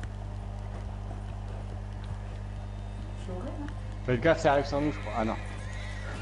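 A horse gallops with hooves thudding on dry ground.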